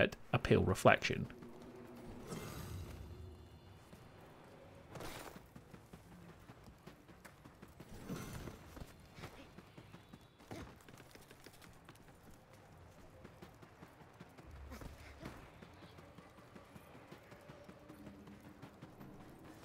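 Footsteps crunch on snow and stone.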